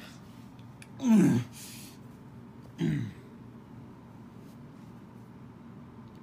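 A hand rubs a soft plush toy against a carpet.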